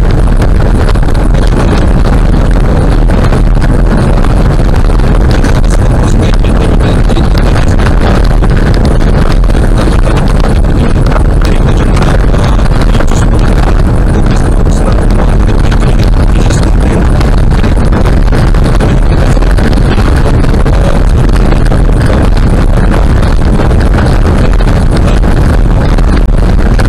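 Tyres rumble and crackle steadily over a rough gravel road.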